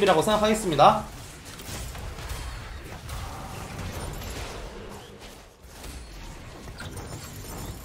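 Magic blasts and clashing effects crackle in a fast battle.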